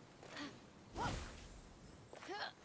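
A short game chime sounds as a map opens.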